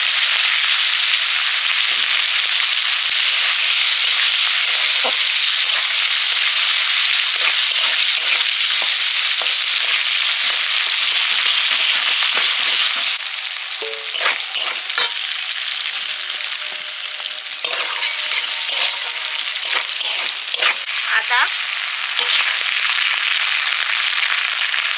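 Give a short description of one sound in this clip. Oil sizzles and crackles loudly in a hot pan.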